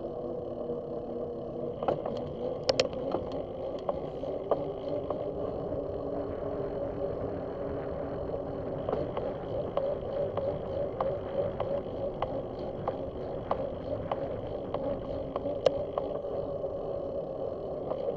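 Wind rumbles across a microphone while riding outdoors.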